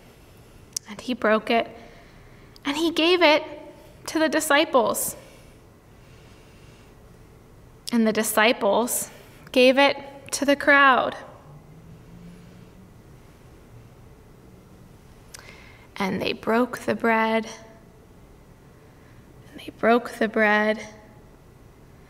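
A young woman speaks calmly and gently, close by, in short phrases with pauses.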